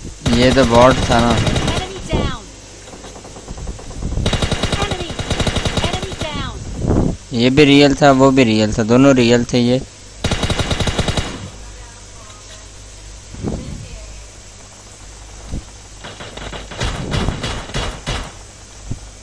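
Rapid bursts of gunfire crack out close by.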